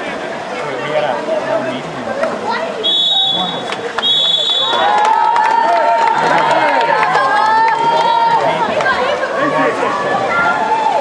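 Players splash in the water of a pool.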